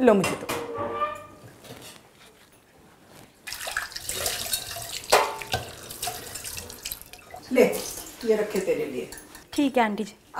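A middle-aged woman speaks calmly nearby.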